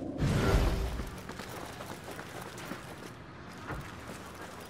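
Quick footsteps run across a stone surface.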